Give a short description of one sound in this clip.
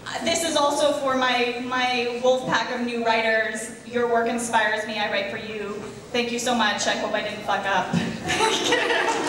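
A young woman speaks with animation into a microphone in a large hall.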